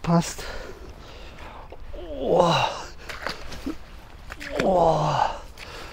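Water splashes as a man wades through it.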